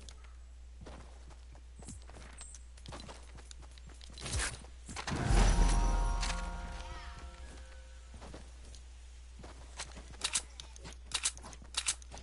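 Footsteps patter through grass.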